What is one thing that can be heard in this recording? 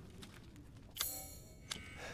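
A game menu opens with a sudden bright whoosh.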